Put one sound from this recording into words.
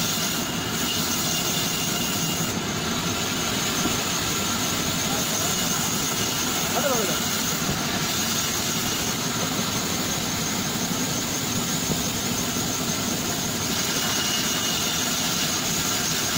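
A band saw runs steadily, cutting through logs with a loud whining buzz.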